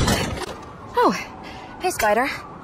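A young woman speaks playfully.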